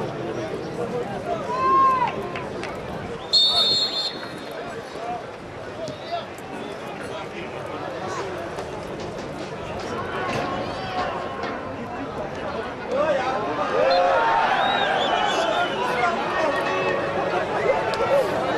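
A large crowd murmurs and shouts in an open stadium.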